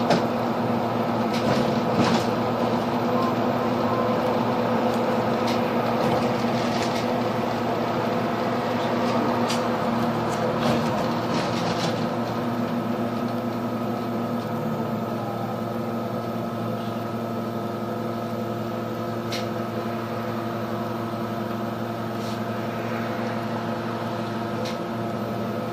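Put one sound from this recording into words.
A bus engine hums steadily from inside the moving bus.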